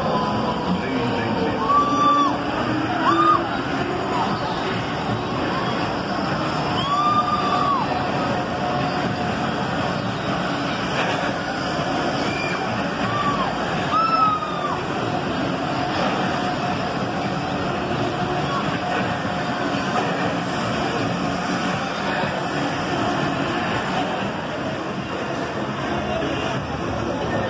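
A fairground ride whirs and rumbles steadily as it spins.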